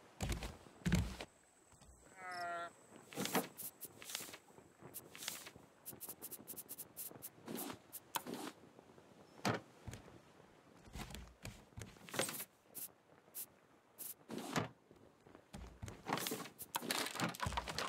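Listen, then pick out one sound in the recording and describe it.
Short clicks of a game menu sound again and again.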